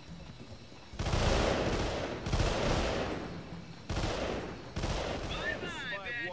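A rifle fires short bursts of gunshots.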